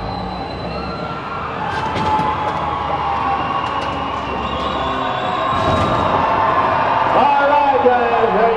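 A big truck engine roars and revs.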